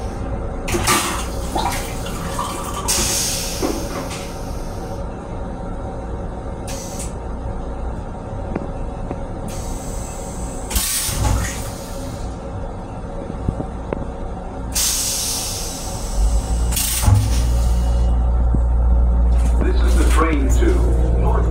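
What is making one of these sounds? Fittings rattle and knock as the train sways.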